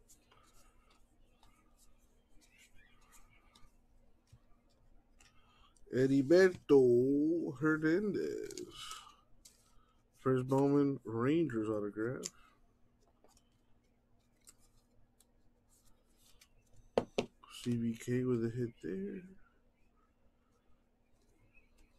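Trading cards rustle and slide softly against each other.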